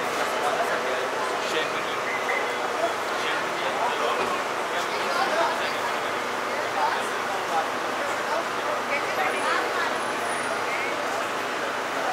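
Two men talk to each other nearby.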